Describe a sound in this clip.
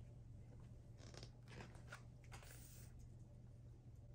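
A book page is turned with a soft paper rustle.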